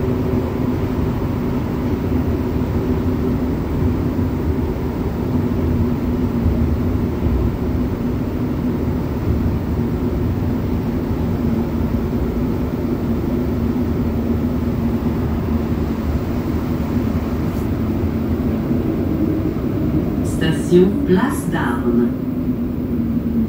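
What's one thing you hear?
A subway train rumbles and hums steadily along the tracks.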